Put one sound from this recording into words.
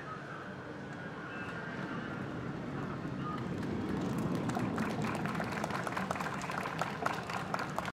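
A brass band plays a lively tune outdoors.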